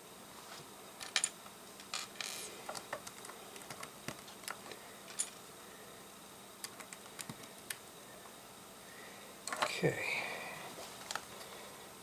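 Plastic toy bricks click and clatter as they are handled and pressed together.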